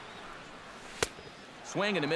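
A ball smacks into a catcher's mitt.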